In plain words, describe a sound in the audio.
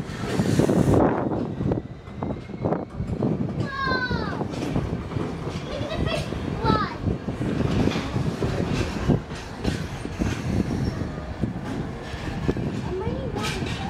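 A diesel locomotive engine rumbles loudly as it passes close by.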